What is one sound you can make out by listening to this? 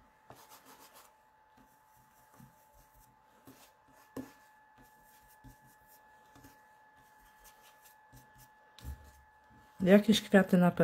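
A foam dauber taps and dabs softly on paper.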